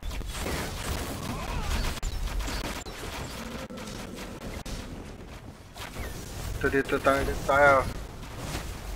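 Game spell effects crash and whoosh in a battle.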